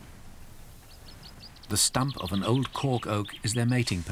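A large bird beats its wings in flight.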